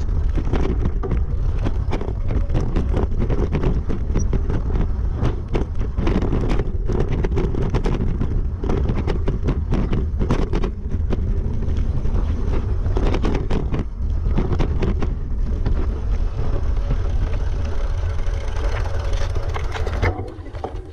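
Bicycle tyres crunch and rattle over a rough gravel trail.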